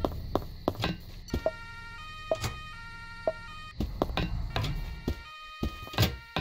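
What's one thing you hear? Punches land with sharp, repeated thuds.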